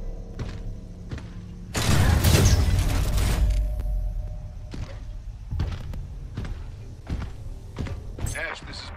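Heavy mechanical footsteps thud at a steady pace.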